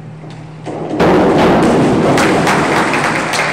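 A diver splashes into a pool.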